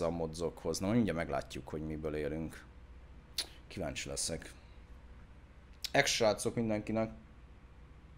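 A man speaks casually and close into a microphone.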